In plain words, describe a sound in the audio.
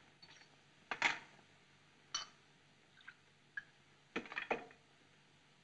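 Glass clinks against a decanter.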